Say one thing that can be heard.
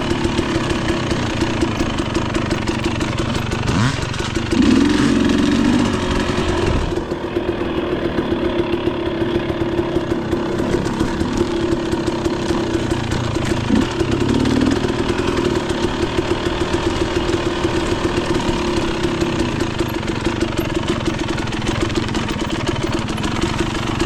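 Tyres crunch over a rocky dirt trail.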